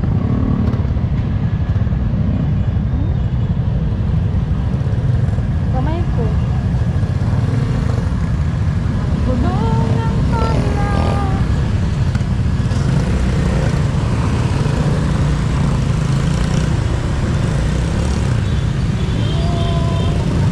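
Many small motorcycle engines rumble as a group rides along a road.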